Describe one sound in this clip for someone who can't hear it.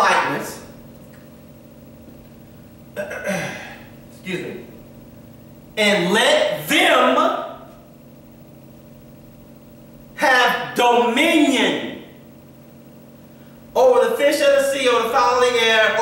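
A man speaks with animation in a room with some echo, pausing between phrases.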